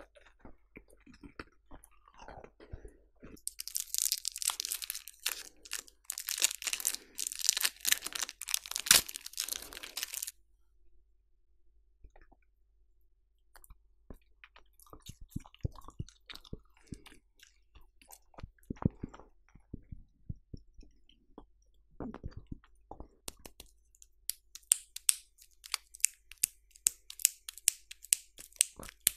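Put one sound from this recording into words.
A mouth makes soft wet clicking and smacking sounds very close to a microphone.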